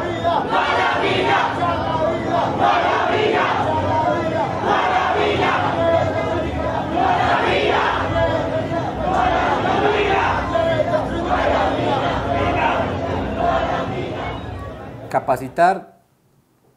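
A crowd of marchers chants loudly outdoors.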